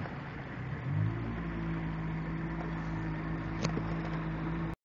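A boat motor starts to hum steadily.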